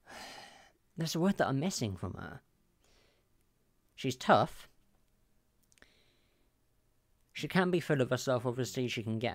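A young woman speaks with animation close to a microphone, in short bursts with pauses.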